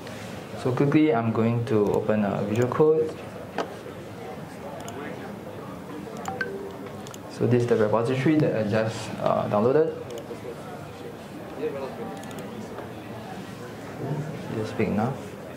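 A young man speaks calmly through a microphone on a loudspeaker in a large room.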